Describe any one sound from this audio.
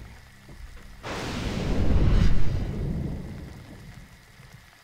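Thunder rumbles loudly and fades.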